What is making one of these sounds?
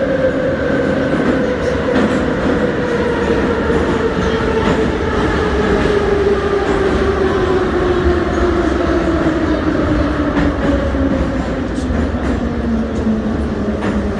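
A train's motor whines, its pitch slowly falling as it slows.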